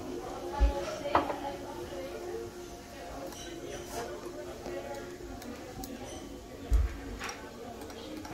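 Chopsticks clink against a plate.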